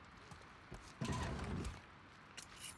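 A drawer slides open.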